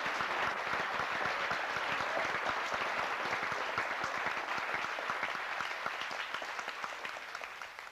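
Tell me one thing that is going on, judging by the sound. An audience claps steadily in an echoing hall, slowly fading.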